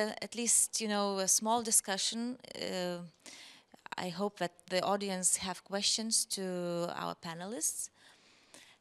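A woman speaks calmly into a microphone over loudspeakers in a large hall.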